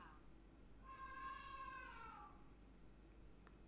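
A phone plays a short rising chime.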